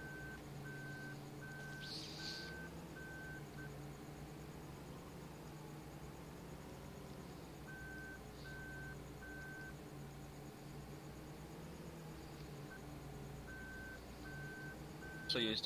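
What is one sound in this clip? A combine harvester engine hums steadily as the machine moves slowly.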